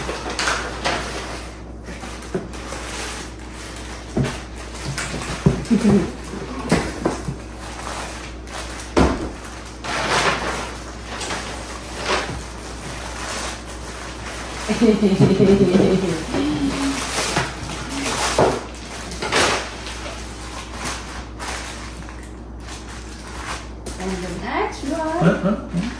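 Paper and tissue rustle and crinkle as a gift is unwrapped.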